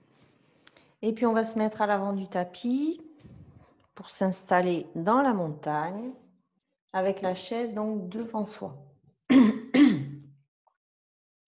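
A middle-aged woman speaks calmly through a clip-on microphone.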